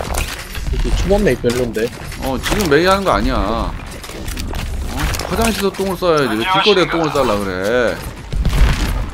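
A young man talks loudly and with animation into a close microphone.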